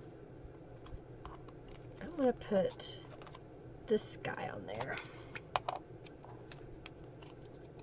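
Paper rustles as a hand handles a card.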